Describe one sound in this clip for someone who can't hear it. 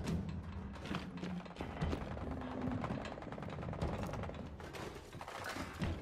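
Heavy footsteps thud on a debris-strewn floor.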